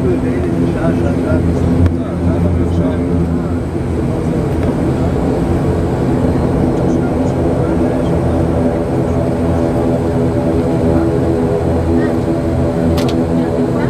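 A jet engine hums loudly and steadily inside an airliner cabin.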